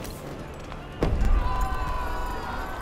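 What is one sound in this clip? A loud heavy thud booms.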